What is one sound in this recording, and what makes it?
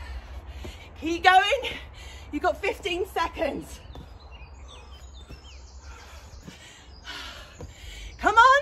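A young woman speaks with energy close by.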